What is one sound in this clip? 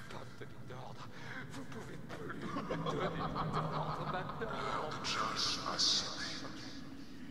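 A young man laughs hysterically.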